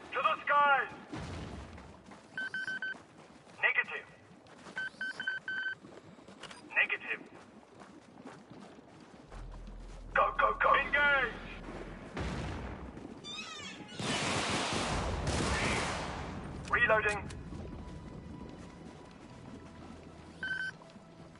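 Guns fire in short rapid bursts.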